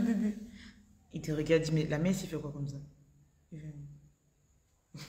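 A young woman speaks close by, with animation.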